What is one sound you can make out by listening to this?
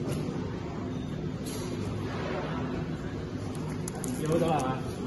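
A plastic wrapper crinkles in a hand.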